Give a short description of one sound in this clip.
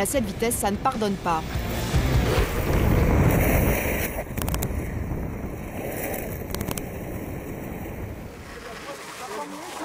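Skateboard wheels rumble and roar on asphalt.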